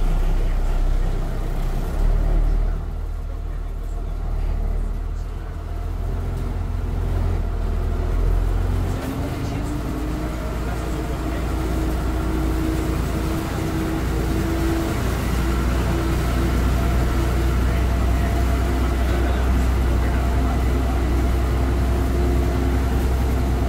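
A bus engine rumbles low and steady from inside the cab.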